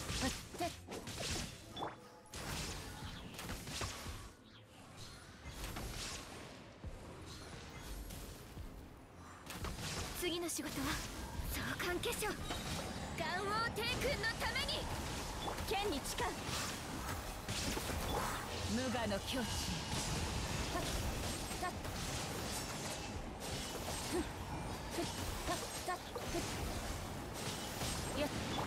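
Magical attacks crackle and burst with sharp impacts.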